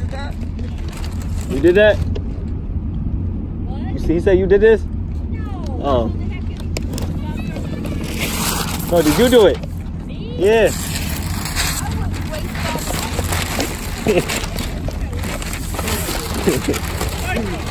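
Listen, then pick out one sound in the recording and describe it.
Paper crinkles and tears as it is pulled off.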